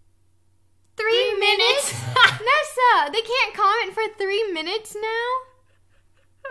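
Two young women laugh loudly.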